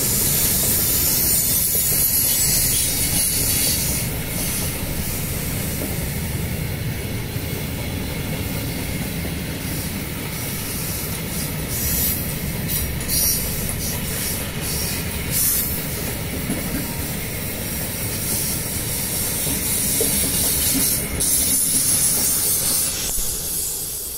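Wheels screech and squeal against the rails.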